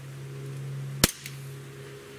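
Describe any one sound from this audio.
An air pistol fires with a sharp crack.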